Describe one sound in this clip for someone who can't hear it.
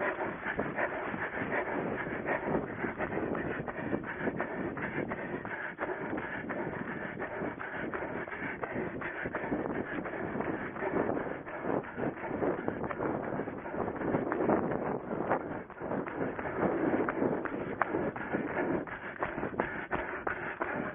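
Footsteps thud rapidly on grass and dirt as a runner jogs.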